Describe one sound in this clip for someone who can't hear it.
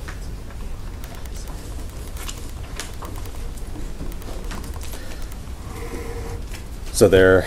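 A pen scratches across paper in short strokes.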